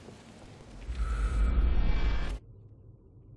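A loud low rumbling whoosh swells as a glowing book opens.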